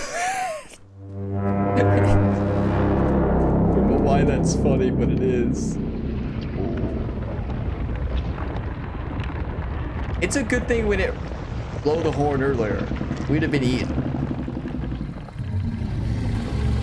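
A giant serpent gives a deep, long rumbling groan.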